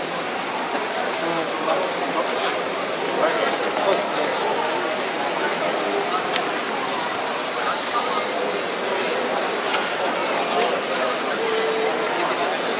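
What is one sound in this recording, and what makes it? A crowd of people chatters throughout a large, echoing hall.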